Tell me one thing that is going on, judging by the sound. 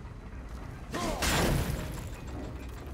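An axe whooshes through the air and strikes with a loud icy crack.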